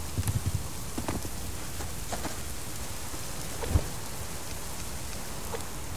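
A campfire crackles.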